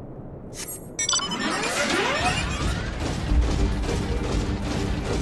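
Large wings whoosh and beat loudly.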